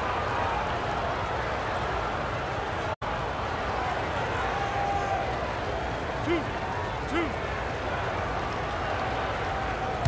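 A large crowd murmurs steadily in an echoing arena.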